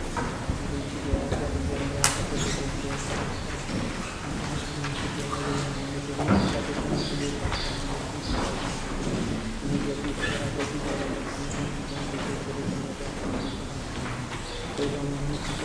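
A man chants in a large echoing hall.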